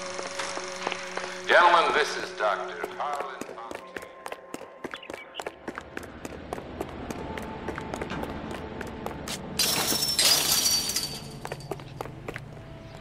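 A man's footsteps run quickly across hard ground outdoors.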